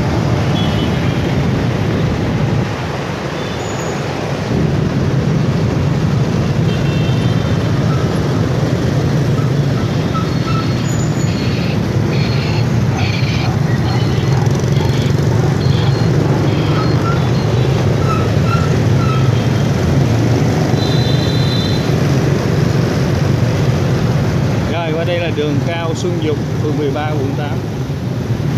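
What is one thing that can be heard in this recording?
Motorbike engines hum steadily all around in busy traffic.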